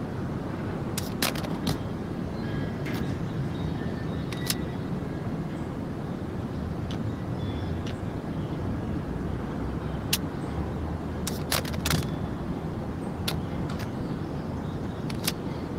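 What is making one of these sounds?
A gun's metal parts click and clack as it is handled.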